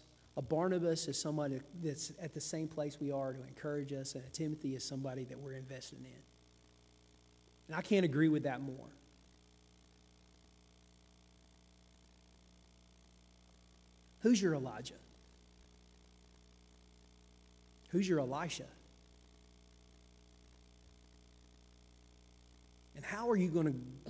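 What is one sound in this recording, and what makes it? A man speaks calmly through a microphone, with long pauses.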